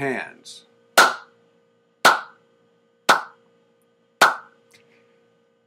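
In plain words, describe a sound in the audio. An elderly man claps his hands slowly four times.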